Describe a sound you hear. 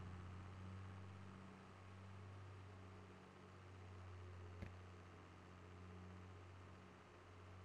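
A tractor engine hums low and steady while driving.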